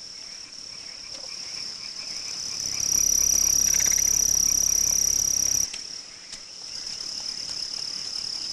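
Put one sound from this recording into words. A child runs through tall grass with swishing footsteps.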